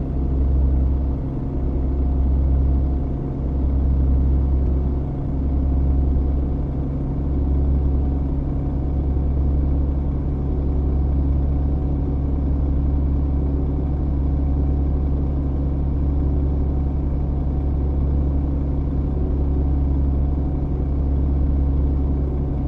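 A heavy diesel truck engine drones steadily, cruising on a motorway, heard from inside the cab.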